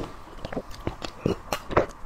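A young woman sips a drink from a glass.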